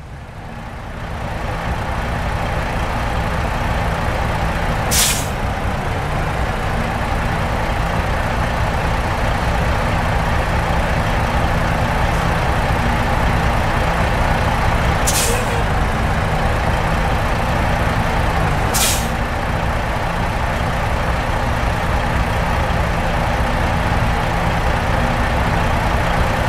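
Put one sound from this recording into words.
A truck engine rumbles steadily as it drives along.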